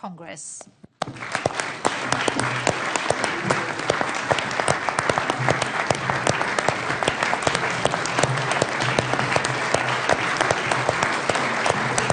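A large crowd claps loudly and steadily in a big hall.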